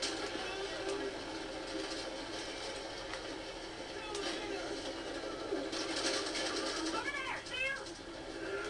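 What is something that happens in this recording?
Gunshots crack sharply from a video game through a loudspeaker.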